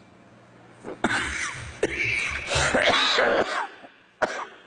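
An elderly man coughs into his hand.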